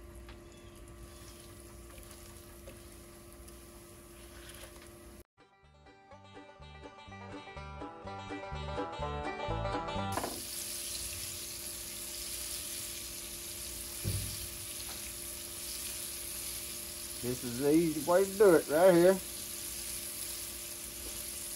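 Chicken pieces sizzle in hot oil in a pan.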